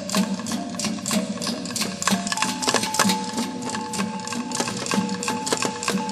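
Dancers' bare feet stamp rhythmically on a wooden stage.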